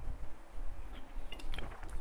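A man gulps water from a plastic bottle.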